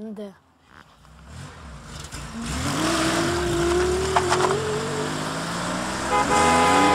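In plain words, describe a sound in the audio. A car engine starts and revs.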